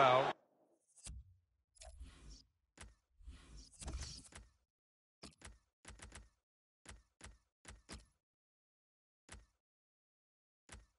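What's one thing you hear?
Menu selections click in short blips.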